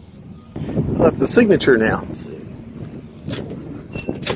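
A glass door clicks open and swings.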